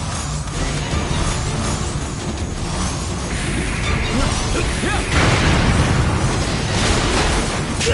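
Blades clash and strike during a fierce fight.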